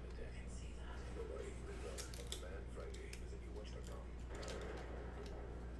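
Trading cards rustle and click as they are handled.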